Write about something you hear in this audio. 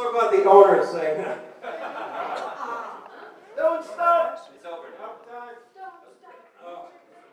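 A crowd of people chatter loudly nearby.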